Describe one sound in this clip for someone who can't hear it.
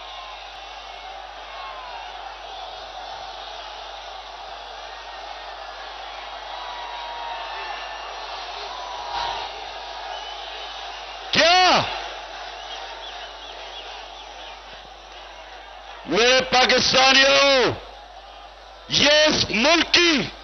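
A large outdoor crowd cheers and roars steadily.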